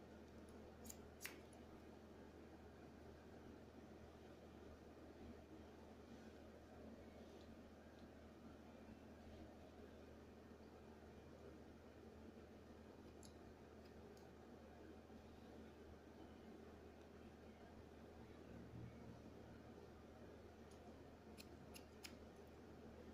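Scissors snip through hair in short metallic clicks.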